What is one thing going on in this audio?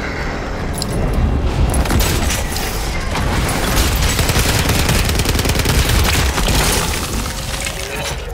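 A loud energy blast roars and crackles.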